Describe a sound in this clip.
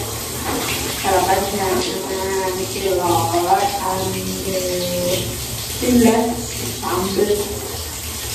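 A young woman talks calmly and close by in a small echoing room.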